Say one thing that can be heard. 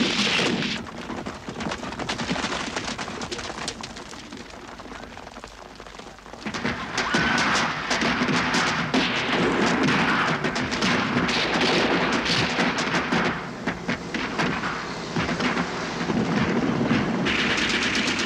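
Horses gallop over dry ground.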